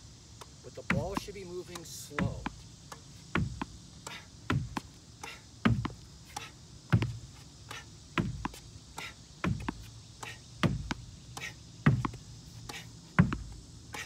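A tennis ball bounces on a hard court.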